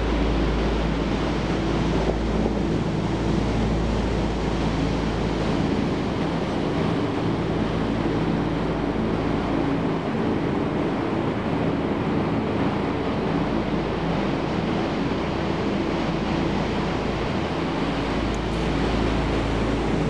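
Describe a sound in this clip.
Ocean waves break and wash steadily onto a beach.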